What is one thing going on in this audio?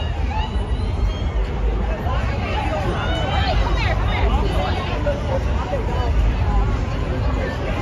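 A crowd of young people talks and shouts excitedly outdoors, close by.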